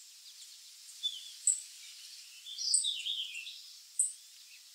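Nestlings cheep shrilly for food.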